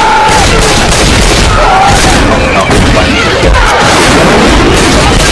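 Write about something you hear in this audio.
A pistol fires repeatedly.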